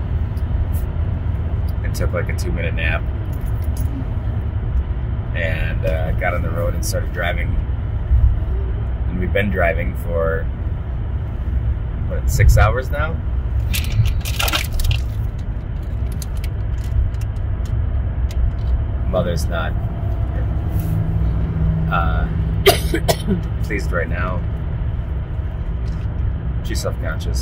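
A car's engine and road noise rumble steadily from inside the car.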